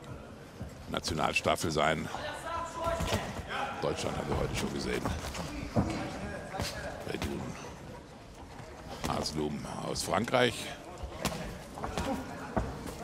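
Punches thud on boxing gloves.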